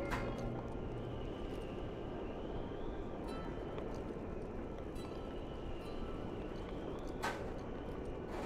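Hands and boots scrape against rock during a climb.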